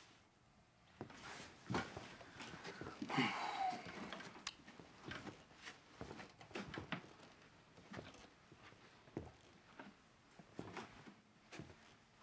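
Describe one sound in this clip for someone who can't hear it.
A man rummages through boxes, with soft knocks and rustles.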